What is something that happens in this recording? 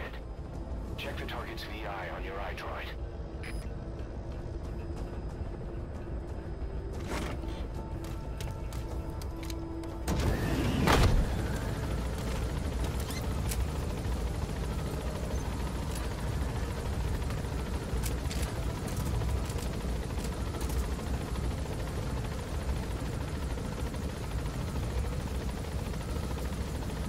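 A helicopter's engine and rotor drone steadily from inside the cabin.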